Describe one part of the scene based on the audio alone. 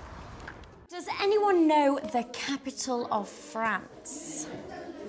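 A woman asks a question, speaking clearly in a room.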